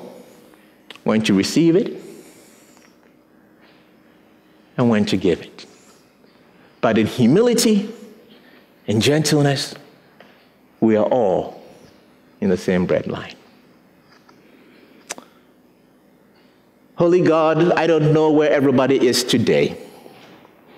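A man speaks with animation in short bursts through a microphone, in an echoing hall.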